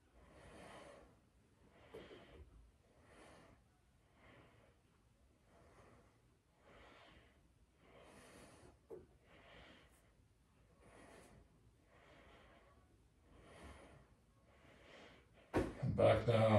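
A man breathes out in slow, steady rhythmic breaths nearby.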